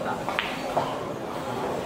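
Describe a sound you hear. Pool balls knock together on the table.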